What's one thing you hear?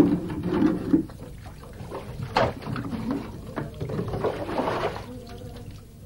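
Water splashes into a plastic bucket from a spout.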